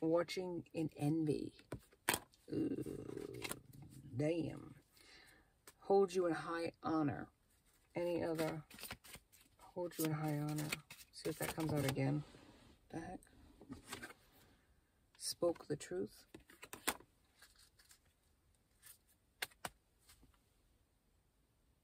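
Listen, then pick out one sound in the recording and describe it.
Paper cards rustle in a woman's hands.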